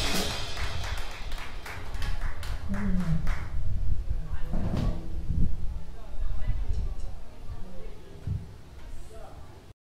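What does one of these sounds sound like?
A drummer plays the drums.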